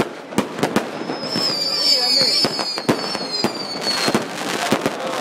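Rockets whistle as they shoot upward.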